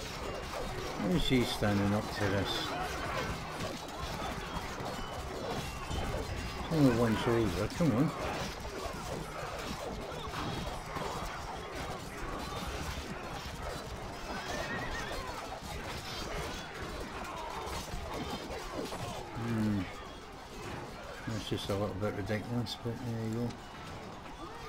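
Soldiers shout battle cries in bursts.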